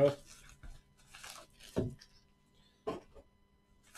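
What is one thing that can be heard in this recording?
A hard plastic case clicks as it is set down.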